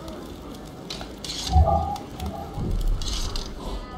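Sound effects of a fight clash and thump briefly.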